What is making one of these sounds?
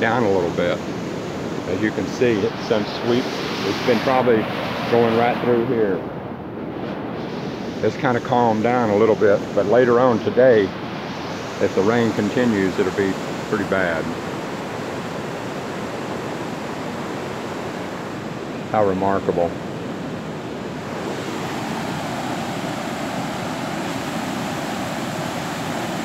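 Floodwater rushes and roars steadily.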